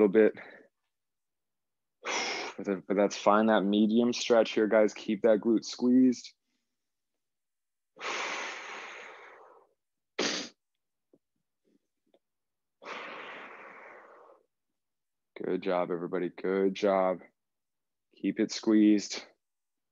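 A young man speaks calmly and clearly, close to a microphone, in short bursts.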